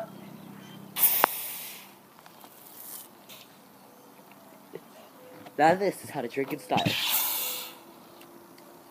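A soda can hisses and sprays as it is opened.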